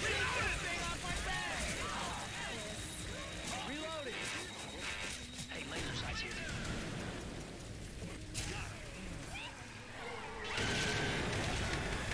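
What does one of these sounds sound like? Fireworks crackle and hiss.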